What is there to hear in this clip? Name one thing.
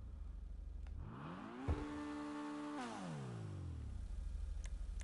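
A sports car engine revs up smoothly, holds, and winds back down.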